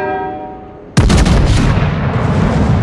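Heavy guns fire with a loud, deep boom.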